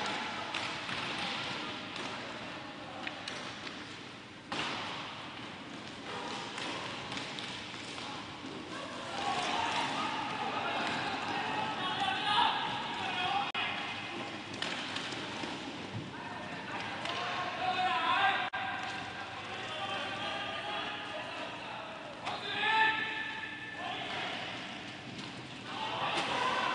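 Skate wheels roll and scrape across a hard floor in a large echoing hall.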